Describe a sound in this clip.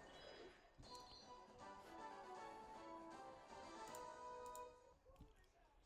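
A short victory tune plays with bright ringing notes.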